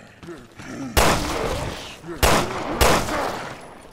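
A handgun fires several loud shots.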